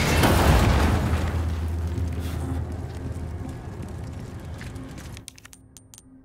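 A fire roars and crackles loudly, then fades.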